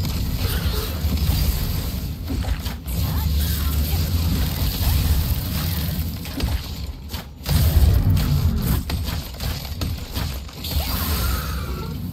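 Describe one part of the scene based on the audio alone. Sword strikes clash and swish in a fight.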